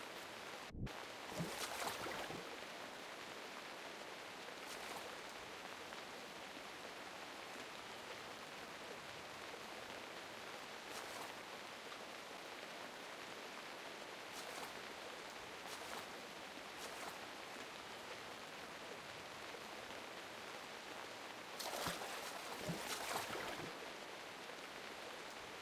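Water splashes as swimmers paddle through it.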